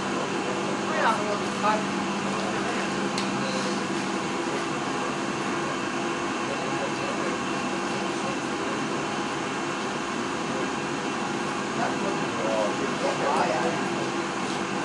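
Several men chat quietly in the background of a room.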